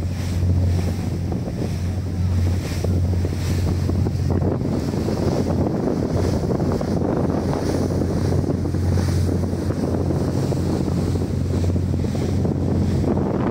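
Water rushes and splashes against a moving boat's hull.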